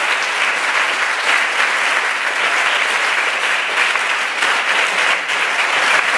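A woman claps her hands in a large echoing hall.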